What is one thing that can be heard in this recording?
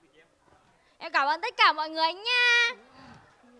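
A young woman sings loudly into a microphone.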